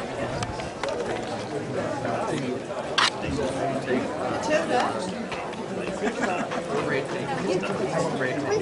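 A crowd of spectators chatters outdoors in the distance.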